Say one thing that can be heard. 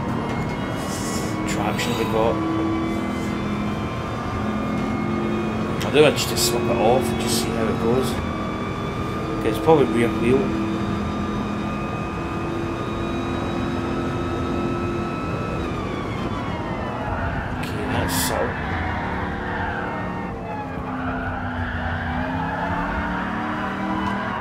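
A racing car engine roars at a steady high pitch, then drops lower as the car slows.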